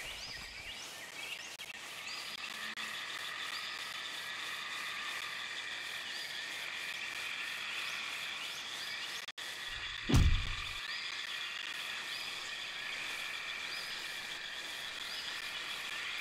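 Small paws patter softly through grass.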